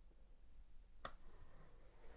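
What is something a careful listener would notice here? A plastic UV lamp switches on with a click.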